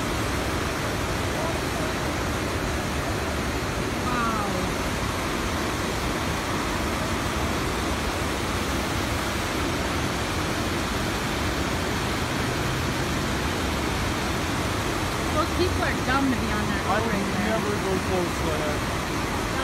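Floodwater roars steadily through a rocky channel close by.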